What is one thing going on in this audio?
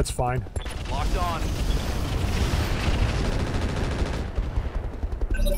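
An explosion rumbles low and heavy.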